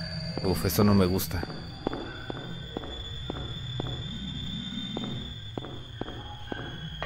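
Footsteps thud at a steady walking pace.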